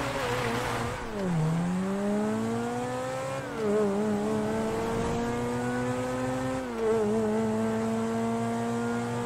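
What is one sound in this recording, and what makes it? A sports car engine accelerates through the gears.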